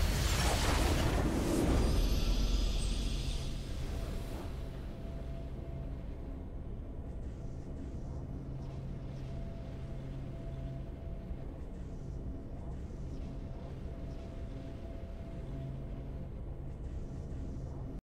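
A triumphant victory fanfare plays and fades to soft music.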